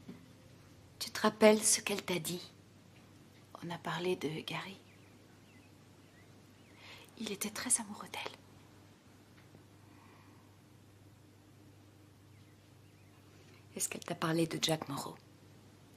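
A woman speaks quietly and calmly in short phrases, close by.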